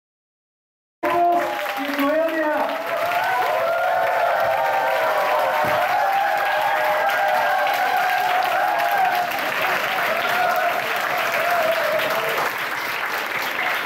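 A crowd of men and women cheers and whoops.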